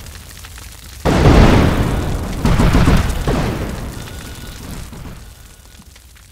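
Loud explosions boom and rumble, then slowly fade.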